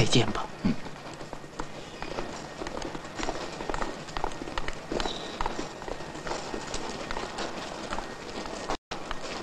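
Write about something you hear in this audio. Footsteps of many people echo.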